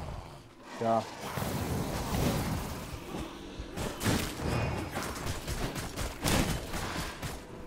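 Swords clash and spells burst in a video game fight.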